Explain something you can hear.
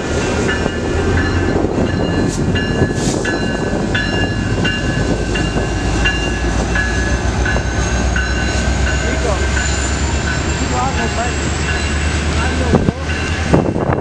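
A diesel commuter train rumbles past close by.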